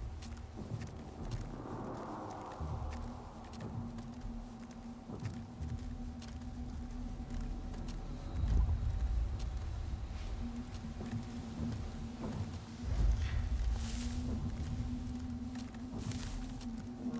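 Dry branches rustle and crack as someone pushes through brush.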